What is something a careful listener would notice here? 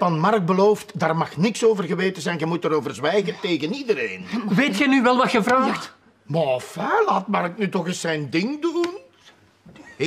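A middle-aged man talks with animation, close by.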